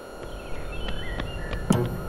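A window swings open with a creak.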